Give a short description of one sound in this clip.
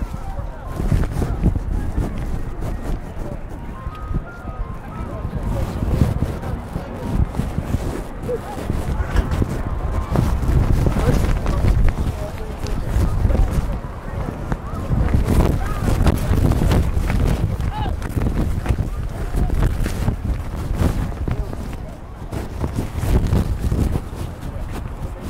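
Wind rumbles across an open field outdoors.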